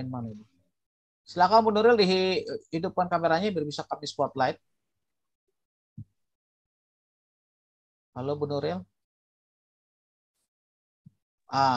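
A man speaks calmly in pauses through an online call.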